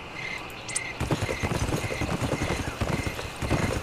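A horse's hooves gallop quickly over the ground.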